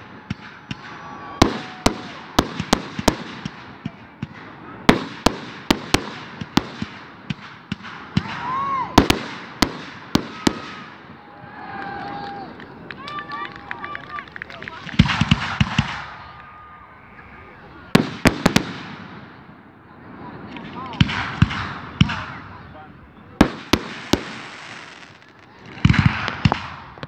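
Fireworks burst with loud booms and sharp bangs.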